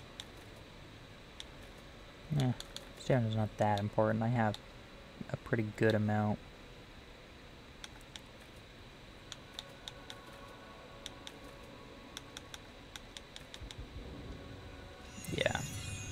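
Soft interface clicks tick repeatedly.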